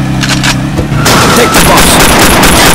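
A car crashes into another car with a metallic crunch.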